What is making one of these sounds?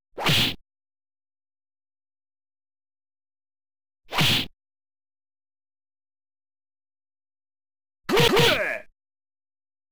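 Quick punches swish through the air, three times with long pauses between.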